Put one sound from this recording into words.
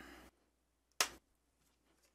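A hinged plastic lid snaps shut with a sharp clack.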